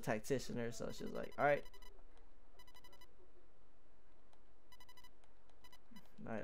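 Short electronic beeps tick rapidly as game text scrolls.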